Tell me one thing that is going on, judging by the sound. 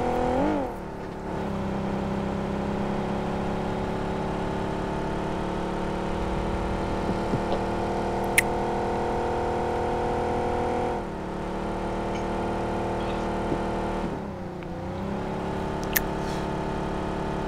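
A car engine hums steadily, rising and falling in pitch as it speeds up and slows down.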